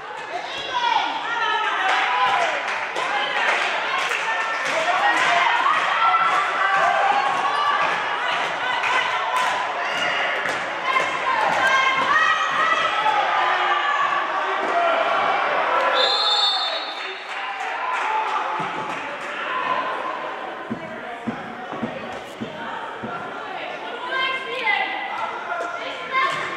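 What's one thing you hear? Young women shout and call to each other in a large echoing hall.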